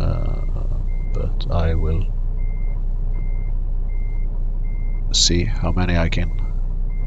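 A reversing alarm beeps at an even, steady pace.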